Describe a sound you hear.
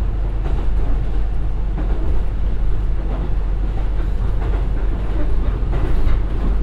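Train wheels click and clatter over the track joints.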